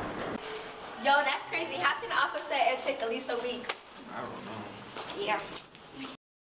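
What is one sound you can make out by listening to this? A young girl talks and laughs with excitement close by.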